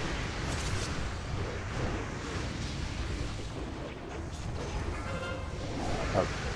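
Magic spells whoosh and crackle in a busy battle.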